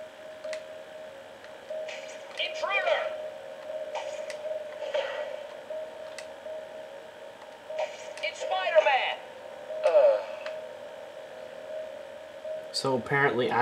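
Swooping video game sound effects play in bursts through a television speaker.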